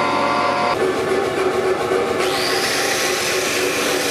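An angle grinder whirs and scrapes against hot metal.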